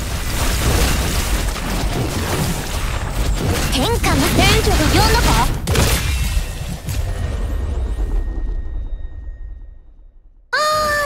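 Explosions and blasts boom and crackle in quick succession.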